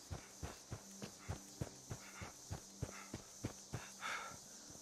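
Footsteps crunch quickly through dry leaves.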